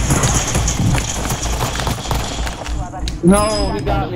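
Rapid gunshots fire in bursts close by.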